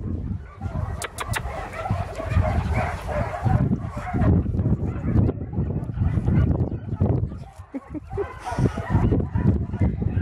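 Dogs scamper and run over grass nearby.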